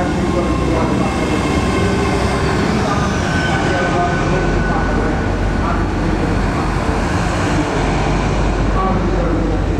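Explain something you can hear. Train wheels squeal faintly on the track.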